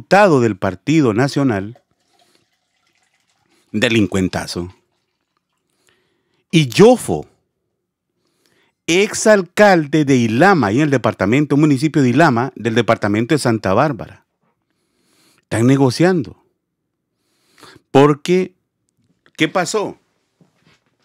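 A man speaks with animation through a phone-like recording, in bursts with pauses.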